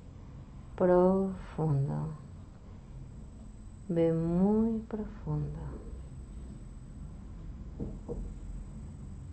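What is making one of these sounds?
A woman speaks softly and slowly close by.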